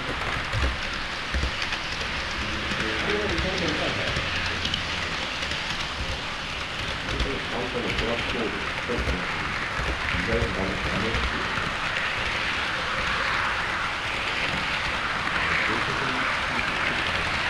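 A model train rumbles and clicks along the track close by.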